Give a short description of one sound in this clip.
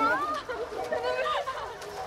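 Water laps and splashes gently in a pool.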